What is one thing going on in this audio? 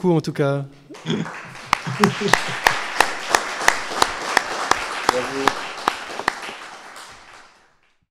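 An audience applauds in an echoing hall.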